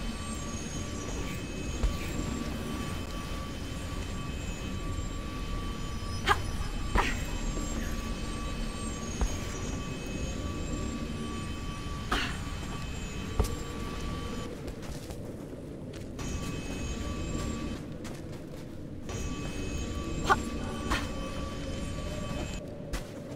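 A magic shield hums steadily around a game character.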